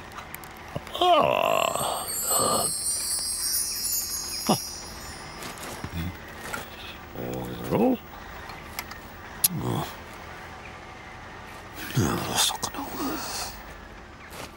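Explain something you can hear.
A man mumbles and hums playfully.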